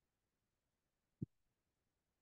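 A small clay disc taps down onto a table.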